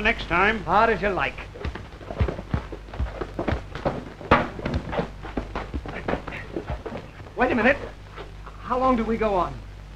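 Fists thump and bodies scuffle in a fight.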